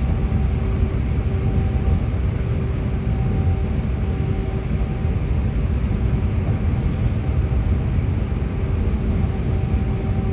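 Tyres roar on the road, echoing in a tunnel.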